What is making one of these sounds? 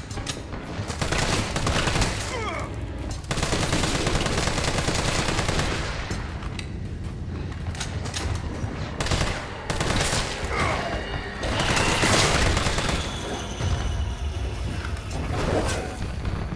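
Gunshots boom loudly, one after another.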